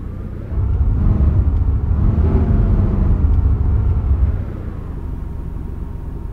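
A car engine rumbles low and steady, swelling louder for a few seconds before settling back.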